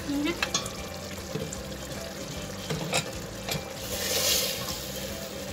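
A wooden spoon scrapes and stirs in a pot.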